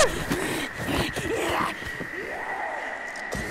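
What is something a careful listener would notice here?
A man screams loudly and close by.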